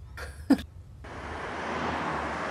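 Traffic rumbles with a steady hiss outdoors.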